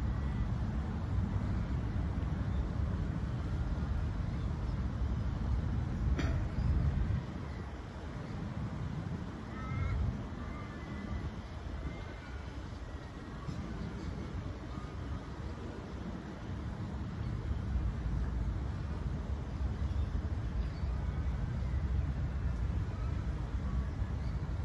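Wind buffets the microphone outdoors in low, gusty rumbles.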